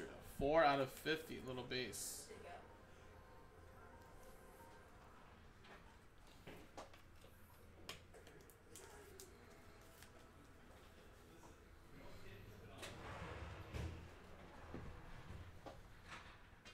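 Cards slide and rustle in hands.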